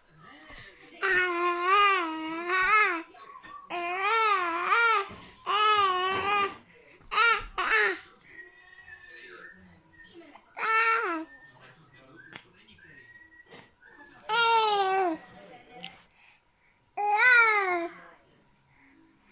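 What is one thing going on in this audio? A baby squeals and babbles loudly in high, singsong bursts close by.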